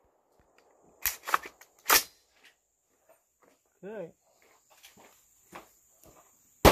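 Metal parts of a rifle click and clack as it is handled.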